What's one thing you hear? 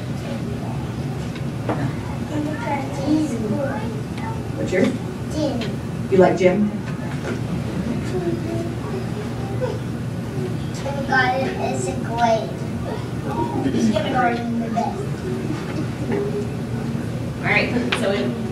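A man speaks calmly through a loudspeaker in a large room.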